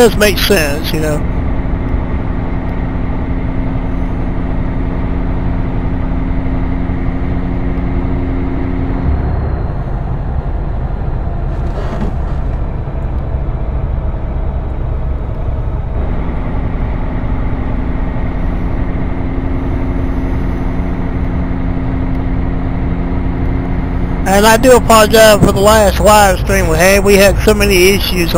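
A truck engine hums steadily as it drives along.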